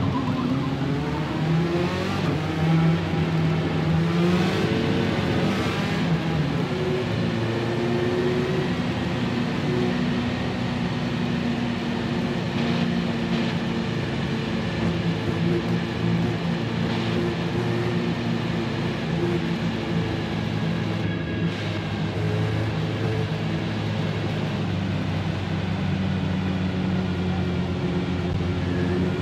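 Other race car engines drone close by.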